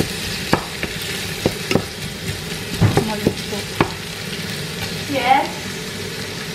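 Chopped onions sizzle softly in a pot.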